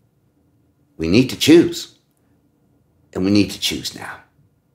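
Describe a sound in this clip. An elderly man speaks expressively, close to a microphone.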